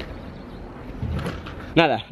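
A unicycle clatters as it drops to the ground.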